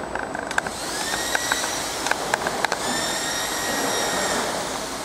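A pedestal fan whirs.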